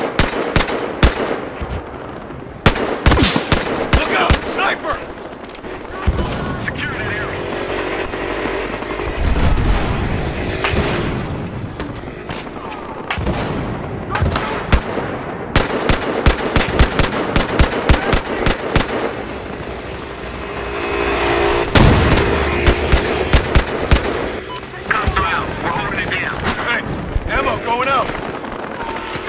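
Rifle shots crack out again and again, sharp and loud.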